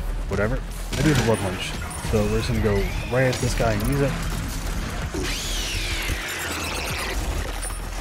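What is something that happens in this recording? A large monster growls and roars.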